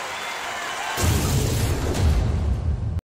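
A loud electronic whoosh and thump play from an arcade game's speakers.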